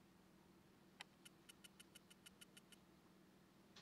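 Quick electronic ticks sound as a balance counts up.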